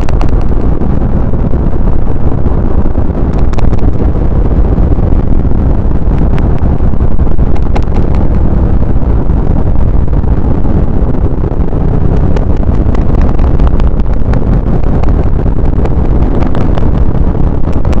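A car drives steadily along a highway with a loud, low road rumble.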